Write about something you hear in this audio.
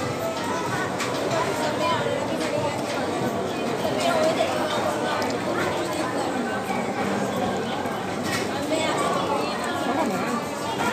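A paper wrapper rustles.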